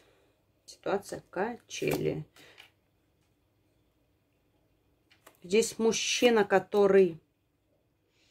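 Playing cards are laid softly onto a table.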